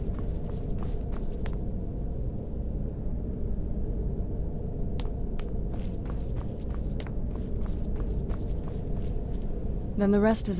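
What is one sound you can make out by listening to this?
Footsteps clack on a stone floor.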